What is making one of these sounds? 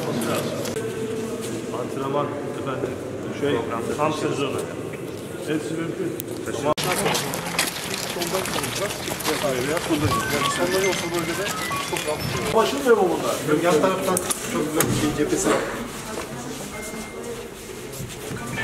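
Several men talk among themselves in a murmuring crowd.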